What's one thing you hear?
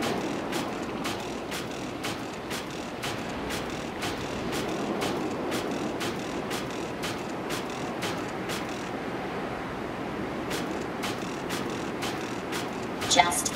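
Small footsteps tap steadily on a metal floor.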